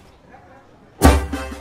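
A man strums an acoustic guitar.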